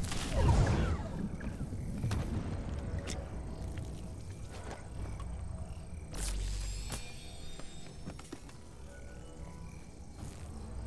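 Leaves rustle as footsteps push through dense bushes.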